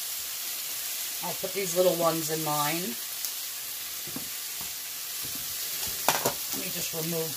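Metal tongs clink and scrape against a pan.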